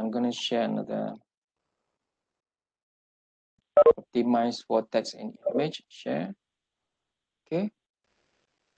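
A man speaks calmly over an online call, pausing between phrases.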